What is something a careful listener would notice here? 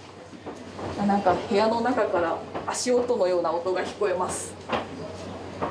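A young woman speaks quietly close by.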